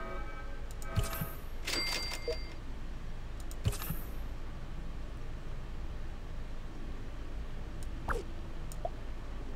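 A game menu gives short electronic clicks and chimes.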